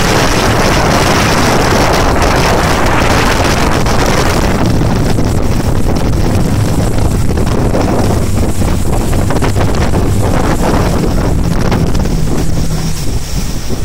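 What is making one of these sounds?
A motorboat engine roars steadily.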